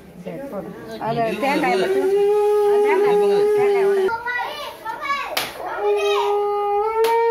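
Women ululate loudly close by.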